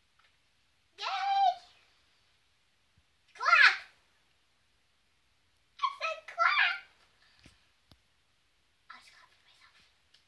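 A young girl speaks with animation up close.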